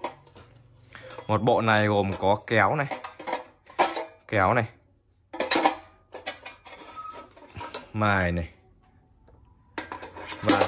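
Metal knives clink and rattle in a steel knife block.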